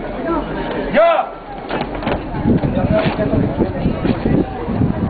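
A crowd of onlookers chatters outdoors.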